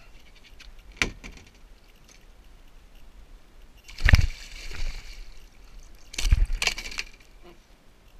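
Knocks and thumps sound against a kayak's hull.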